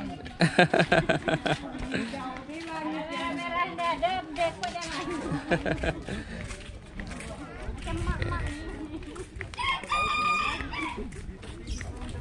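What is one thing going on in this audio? Two women talk with each other nearby as they walk.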